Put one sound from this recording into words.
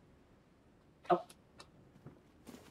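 A young girl speaks quietly.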